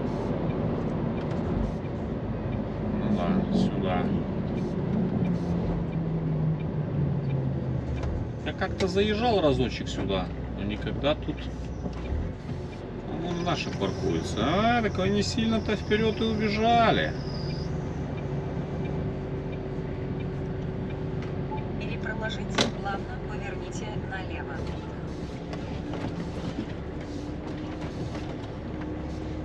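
Tyres roll over a road surface.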